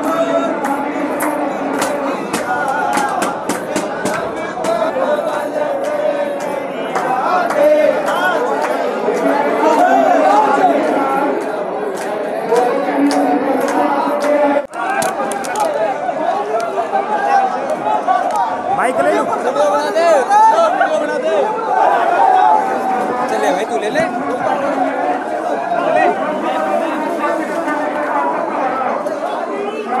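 A crowd of people shouts and cheers loudly nearby.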